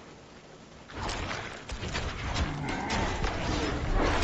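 Loud magical blasts and clashing impacts erupt in a game battle.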